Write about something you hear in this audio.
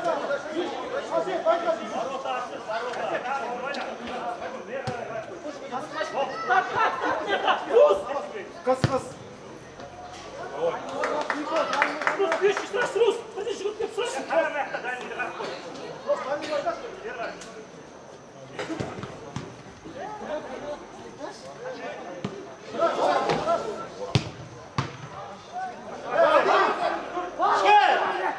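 A crowd of spectators chatters and shouts nearby.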